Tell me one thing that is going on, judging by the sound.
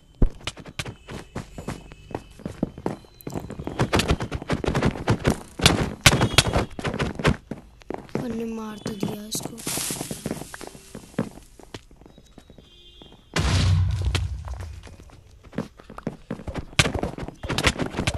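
Sword blows land in a video game with quick sharp hits.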